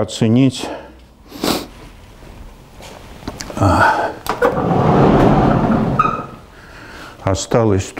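An elderly man speaks calmly in an echoing room.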